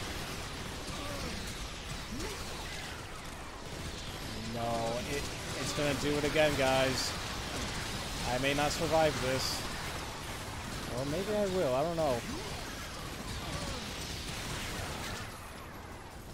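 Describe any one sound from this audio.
Energy guns fire in rapid, crackling bursts.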